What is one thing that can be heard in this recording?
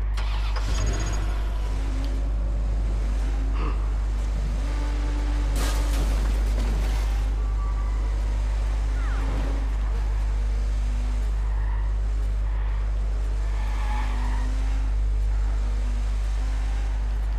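A car engine roars as a car speeds along.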